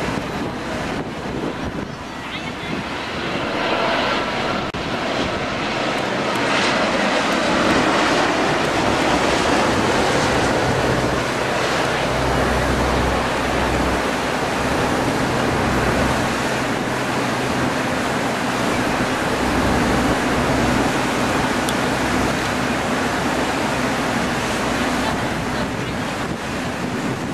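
A jet airliner's engines roar loudly overhead.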